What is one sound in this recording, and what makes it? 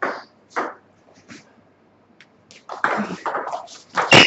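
A table tennis ball clicks off paddles and the table.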